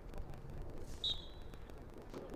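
An umpire's whistle blows with a short, shrill blast.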